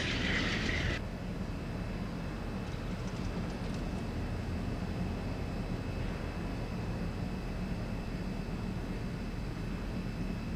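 A diesel locomotive rumbles as it approaches.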